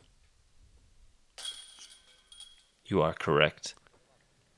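A flying disc clatters into metal chains.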